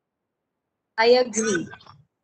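A man speaks into a microphone over an online call.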